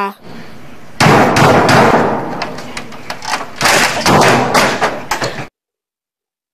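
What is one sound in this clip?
A man bangs a keyboard hard against a computer monitor.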